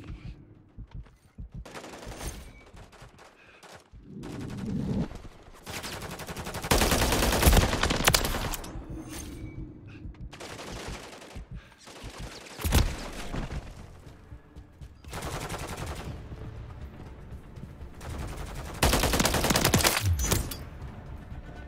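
Rapid gunfire bursts out in short, loud volleys.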